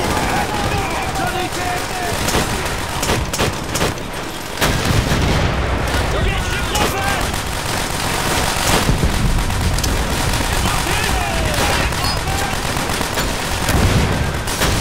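Gunfire crackles steadily all around.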